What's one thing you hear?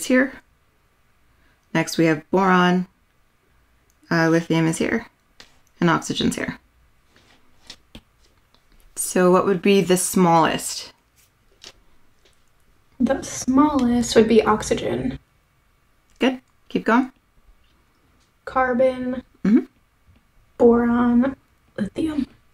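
A young woman speaks calmly into a close microphone, pausing often.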